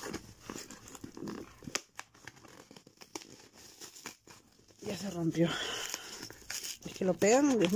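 Paper crinkles and rustles under handling.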